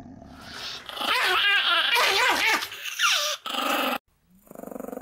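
A small dog growls and yaps fiercely up close.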